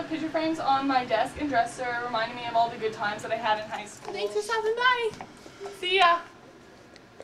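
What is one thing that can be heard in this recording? Young women talk and laugh excitedly close by.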